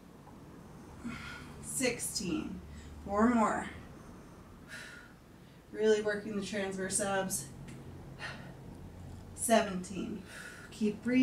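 A woman talks calmly into a close microphone.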